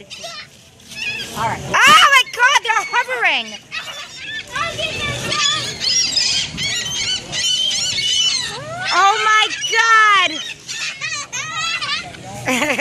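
Many seagulls squawk and cry loudly close by.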